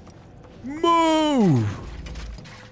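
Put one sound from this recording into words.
A young man lets out a loud, long wail that slides down in pitch, close to a microphone.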